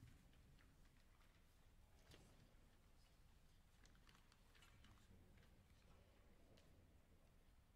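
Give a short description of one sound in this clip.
Faint shuffles and small knocks from a seated congregation echo in a large, quiet hall.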